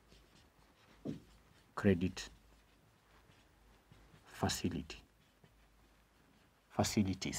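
A man speaks in short bursts, close to a microphone, as if lecturing.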